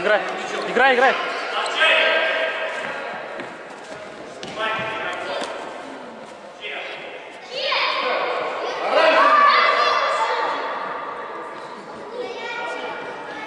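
A ball thuds against a wall and the floor.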